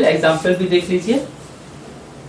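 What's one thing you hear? A man speaks clearly and close by.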